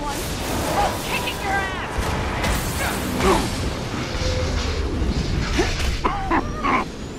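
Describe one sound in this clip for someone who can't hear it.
Heavy blows thud during a fight.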